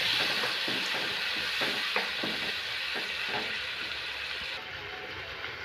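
Sauce sizzles and bubbles in a hot pan.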